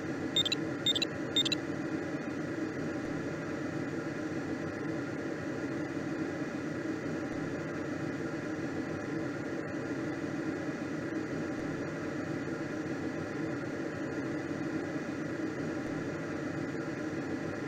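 Air rushes steadily past a gliding aircraft.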